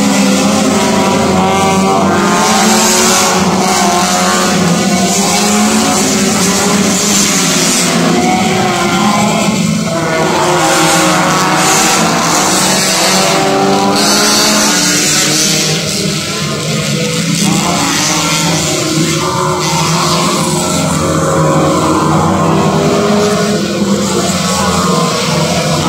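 Racing car engines roar loudly as cars speed past.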